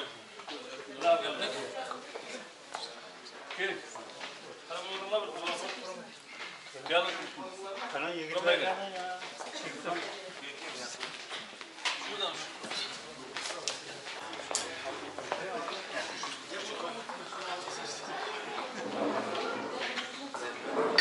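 Several men talk and murmur nearby in a room with some echo.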